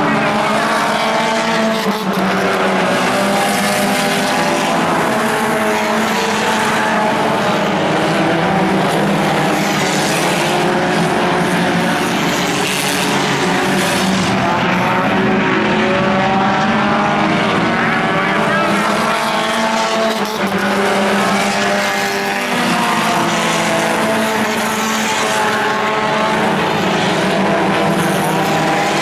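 A pack of four-cylinder compact race cars roars by at full throttle.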